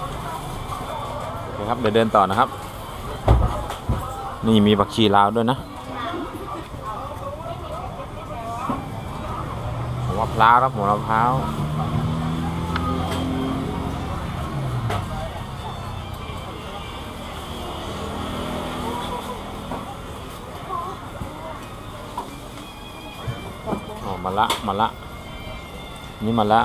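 Men and women chatter nearby, in a lively murmur.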